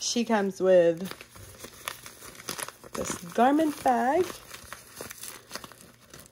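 A crinkly foil wrapper rustles and crackles.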